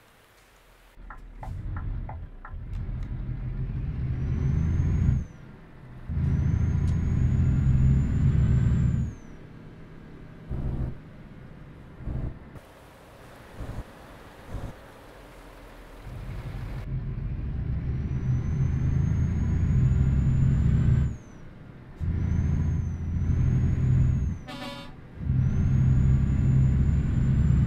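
A heavy truck engine roars, revving up and dropping back between gear changes.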